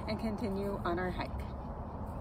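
A young woman speaks briefly and calmly close by.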